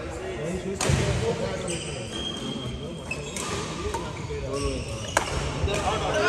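Badminton rackets sharply smack a shuttlecock in a large echoing hall.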